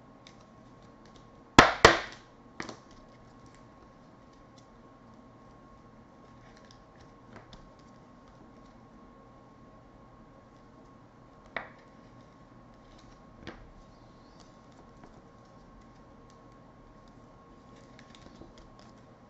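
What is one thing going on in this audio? Trading cards rustle and slide against each other as hands shuffle them.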